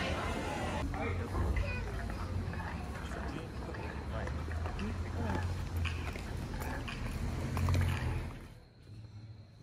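People walk and murmur along a street outdoors.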